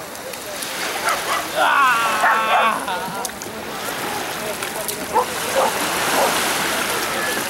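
A toddler babbles.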